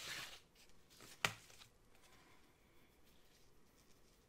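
A sheet of stickers rustles as it is laid down on paper.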